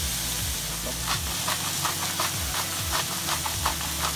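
Oil pops and crackles in a pan.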